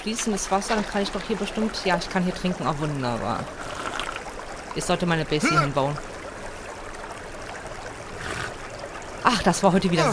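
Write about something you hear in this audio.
Rain patters onto shallow water.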